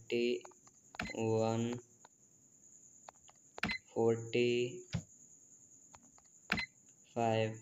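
Keypad buttons click as they are pressed one by one.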